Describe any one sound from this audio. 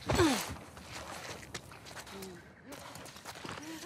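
Footsteps scuff on a hard floor indoors.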